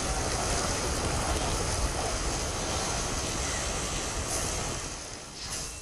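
A magical gust whooshes loudly.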